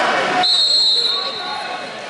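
A whistle blows sharply.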